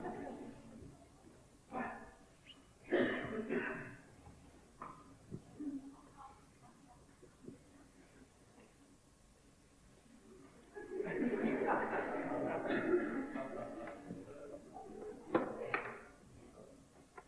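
An elderly man speaks theatrically in a large echoing hall.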